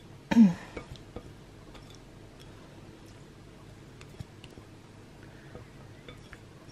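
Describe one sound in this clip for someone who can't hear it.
A whisk clicks lightly against a glass bowl.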